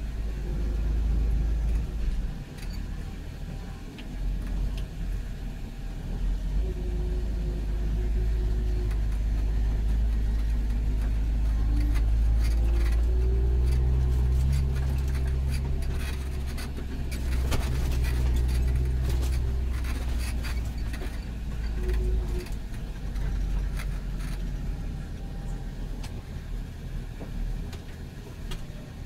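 A tractor cab rattles and knocks over bumpy ground.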